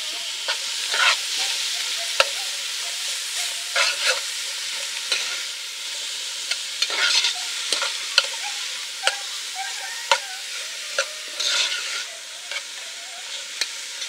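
A metal spoon scrapes and clinks against a metal pan.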